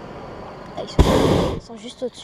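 A hot air balloon burner roars loudly overhead in a short blast.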